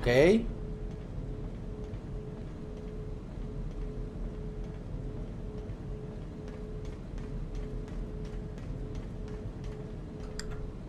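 Footsteps clang on a metal grate.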